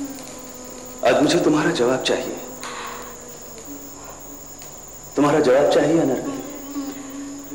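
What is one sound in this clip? A young woman speaks softly nearby.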